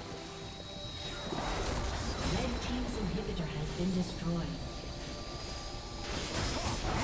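Magic spells and weapons clash and crackle in a busy game battle.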